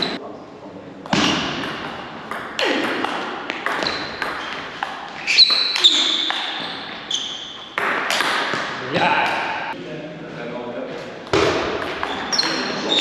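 A table tennis ball clicks back and forth between paddles and table in an echoing hall.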